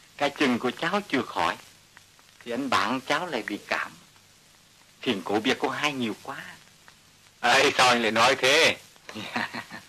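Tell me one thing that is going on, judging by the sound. Men talk back and forth in a calm, conversational tone.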